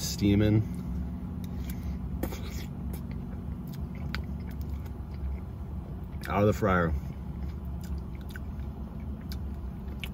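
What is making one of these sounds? A man chews food with soft smacking sounds.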